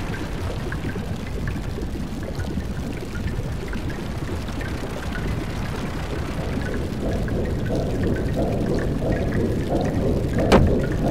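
Water pours steadily from a pipe into a pool.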